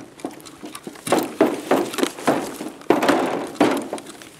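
Heavy footsteps clang on a metal grating.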